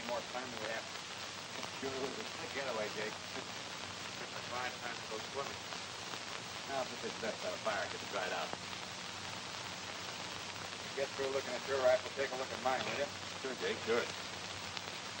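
A man speaks on an old, thin-sounding soundtrack.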